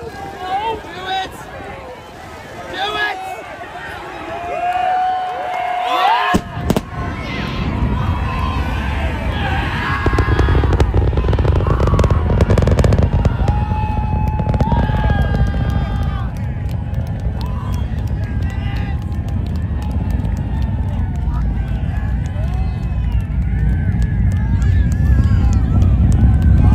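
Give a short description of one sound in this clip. A crowd of onlookers cheers and shouts excitedly nearby.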